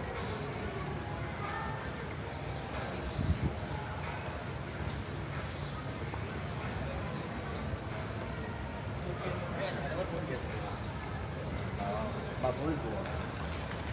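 Footsteps patter on a hard floor in a large echoing hall.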